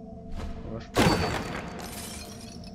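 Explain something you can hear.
Wooden crates smash and break apart with a loud crash.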